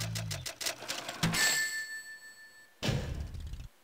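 Quick electronic beeps tick rapidly, then stop with a ringing chime.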